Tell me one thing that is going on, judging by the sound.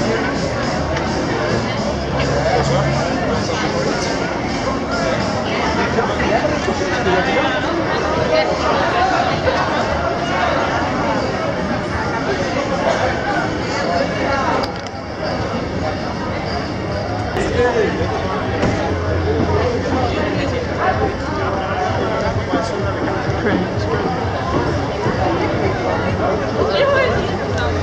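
A busy crowd of people chatters all around outdoors.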